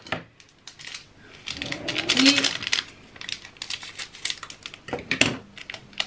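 Scissors snip through a plastic wrapper.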